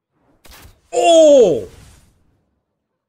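A young man exclaims loudly in disbelief.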